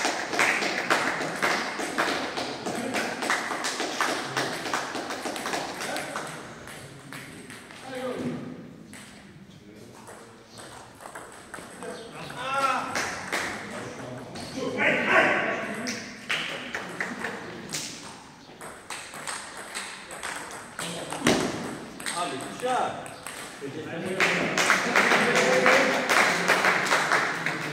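Men and women chatter in the background of an echoing hall.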